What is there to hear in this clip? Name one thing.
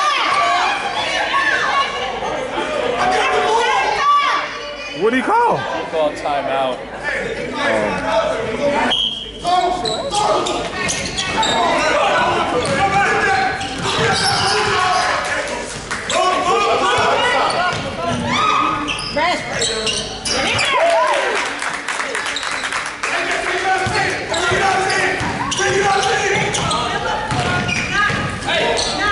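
Spectators talk and cheer loudly in an echoing gym.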